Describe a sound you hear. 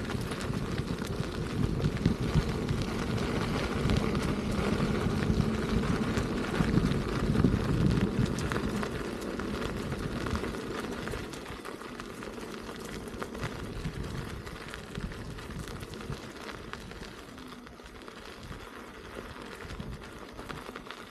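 Wind rushes across a microphone, stronger at first and then easing.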